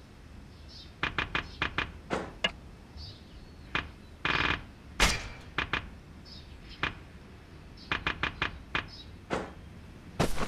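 Menu clicks tick quickly one after another.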